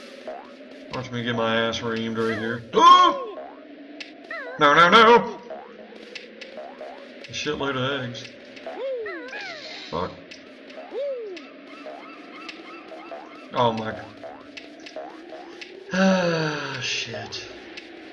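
A cartoon bird squawks and chatters with a high, garbled voice.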